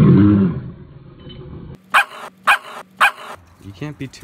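A large dog barks loudly and deeply close by.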